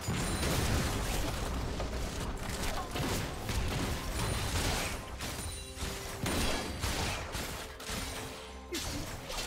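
Spells whoosh and blows clash in a fast fantasy battle.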